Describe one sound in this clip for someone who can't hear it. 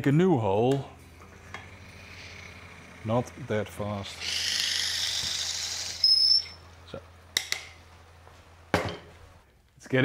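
A lathe hums as it spins.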